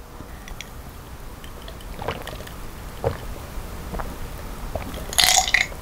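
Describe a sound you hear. A young woman gulps a drink.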